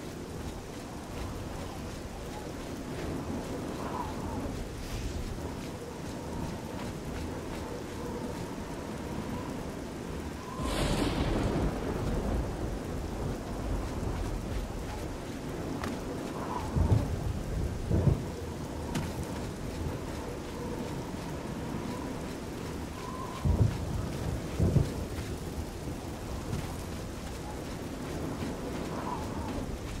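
A torch flame crackles and hisses close by.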